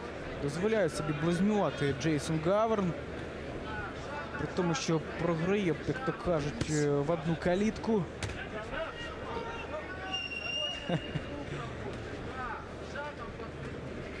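A crowd murmurs steadily in a large hall.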